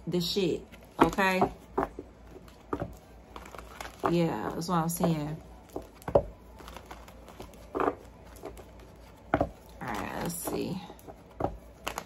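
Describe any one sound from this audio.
A deck of playing cards is shuffled, with soft riffling and tapping.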